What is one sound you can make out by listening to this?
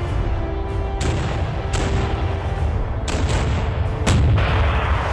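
Heavy naval guns fire in loud, booming blasts.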